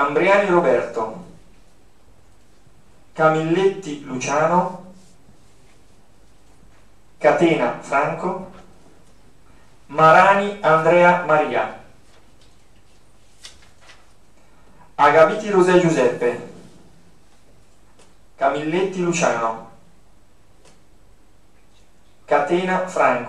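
A man speaks calmly into a microphone in short bursts with pauses.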